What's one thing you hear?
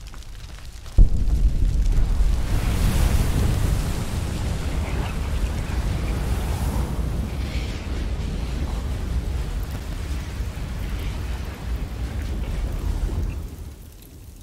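A deep magical rush swirls and rumbles.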